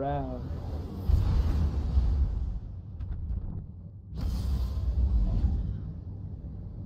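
A spaceship's engines roar and whoosh.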